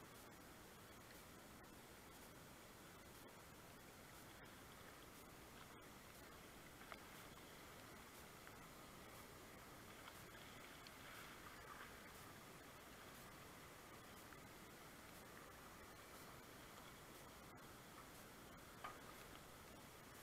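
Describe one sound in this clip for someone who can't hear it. River water rushes steadily over rocks close by.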